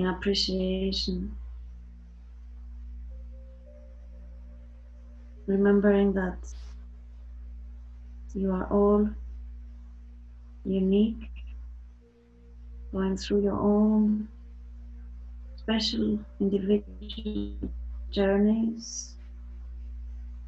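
A woman speaks softly and slowly over an online call.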